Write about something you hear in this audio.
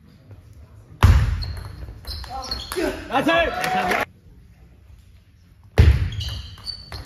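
A crowd claps and cheers in a large echoing hall.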